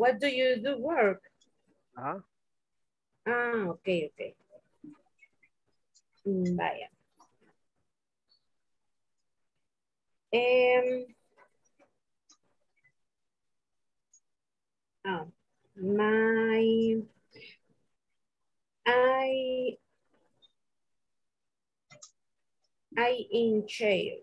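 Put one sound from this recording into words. A woman speaks in short phrases over an online call, with pauses between them.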